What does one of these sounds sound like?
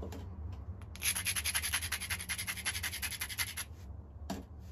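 A stone is scraped rapidly against a whetstone.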